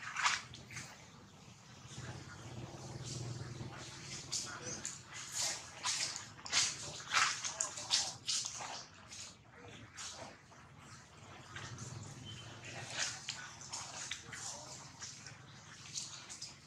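A baby monkey nibbles and chews food close by.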